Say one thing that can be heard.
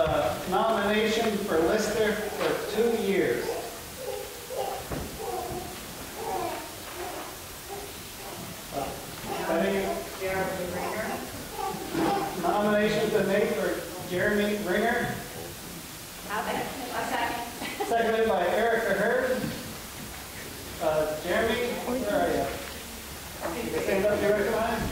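A middle-aged man speaks at length through a microphone in a large echoing hall.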